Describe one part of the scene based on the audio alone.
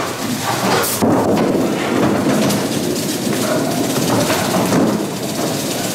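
A bowling ball rumbles down a wooden lane in an echoing hall.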